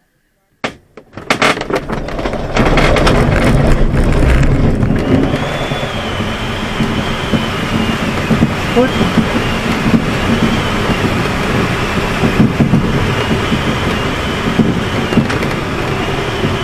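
Air rushes loudly past a glider's cockpit.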